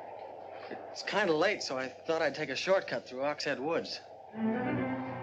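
A middle-aged man speaks firmly nearby.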